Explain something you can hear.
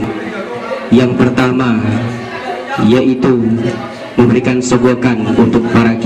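A man sings loudly through a microphone and loudspeaker.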